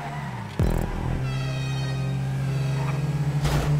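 Car tyres squeal briefly while sliding around a corner.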